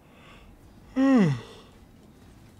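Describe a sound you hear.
A young man lets out a loud, falling exclamation close to a microphone.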